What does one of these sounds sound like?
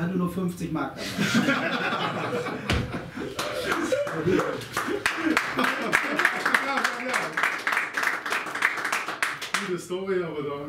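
Men laugh heartily together.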